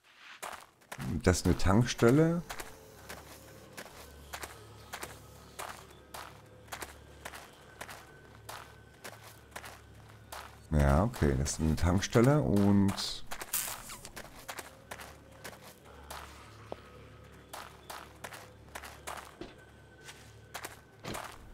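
Footsteps crunch steadily over loose debris.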